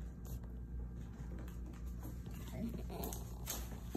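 Disposable gloves snap and rustle on a woman's hands.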